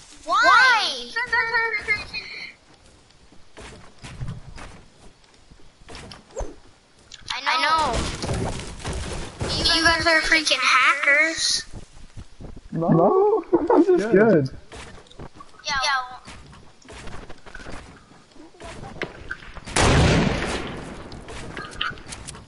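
Wooden walls and ramps snap into place with quick clattering thuds.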